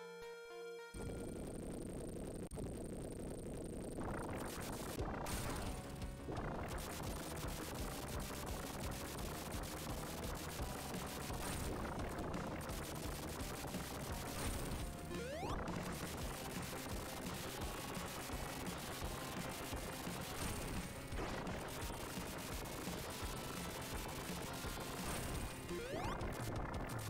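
Retro video game music plays steadily with a driving beat.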